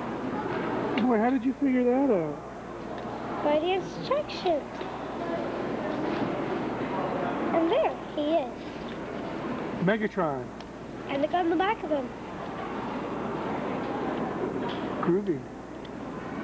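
A young boy talks nearby in a lively voice.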